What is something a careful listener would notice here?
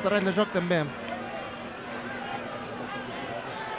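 A crowd murmurs in an open-air stadium.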